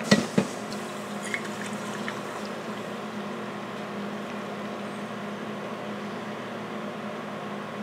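Coffee pours into a cup.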